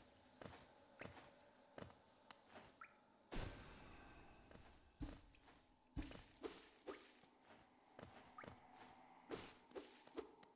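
Short footstep taps and jump sounds patter throughout.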